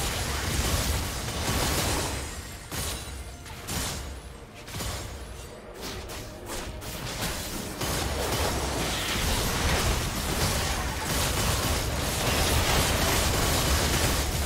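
Game spell effects and hits crackle and burst during a fight.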